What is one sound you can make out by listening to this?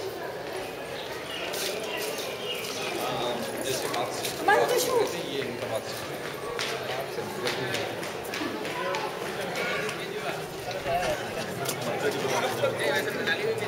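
A crowd of men, women and children chatters nearby outdoors.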